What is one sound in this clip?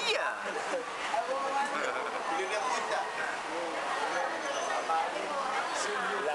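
Many young men and women talk and chatter together at nearby tables.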